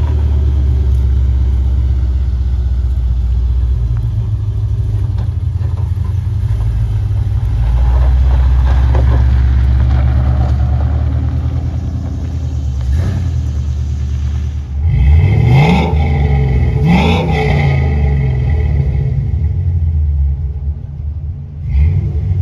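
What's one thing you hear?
A car engine idles with a deep, lumpy rumble.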